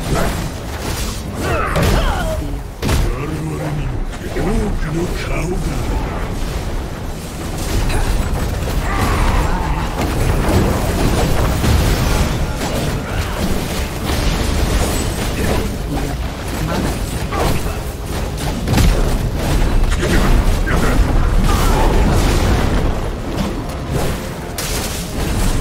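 Game spell effects crackle, boom and clash throughout a busy battle.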